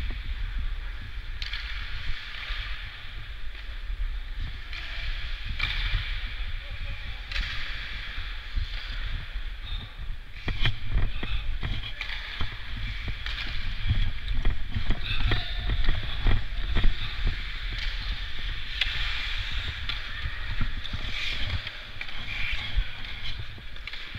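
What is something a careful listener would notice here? Skate blades scrape and hiss across the ice.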